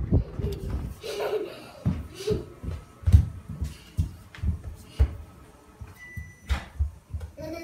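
Bare feet thump and patter on a hard floor.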